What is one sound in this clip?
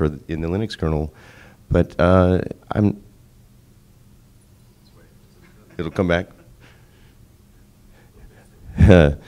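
A man speaks into a microphone over loudspeakers in a large room, pausing between phrases.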